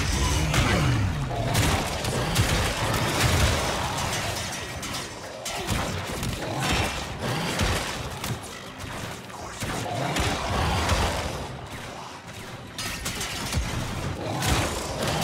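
Rapid gunfire bursts and crackles.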